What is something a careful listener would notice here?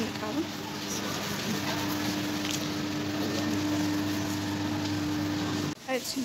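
A plastic wrapper crinkles in a hand.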